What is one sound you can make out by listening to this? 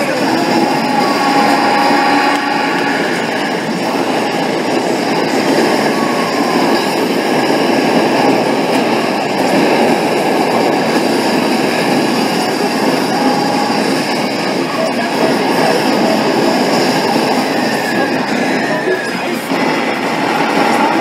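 Arcade game sound effects of gunfire and explosions play loudly through speakers.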